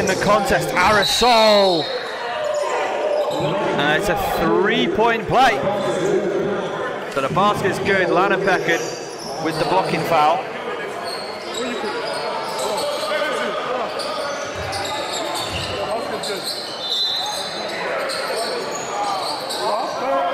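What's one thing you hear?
A crowd of spectators murmurs and shouts in a large echoing gym.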